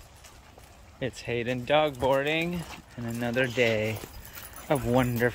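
Dogs bark and howl in a quick series near the end.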